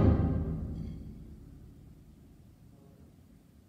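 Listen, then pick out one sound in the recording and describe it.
A school band holds a final chord that rings out and fades in an echoing hall.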